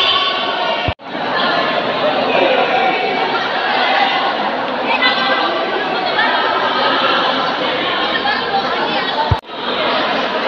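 A young man speaks through a microphone over loudspeakers in an echoing hall.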